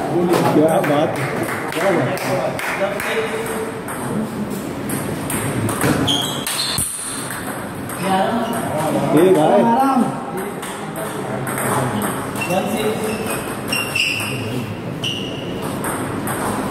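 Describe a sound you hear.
Men talk in the background of a large echoing hall.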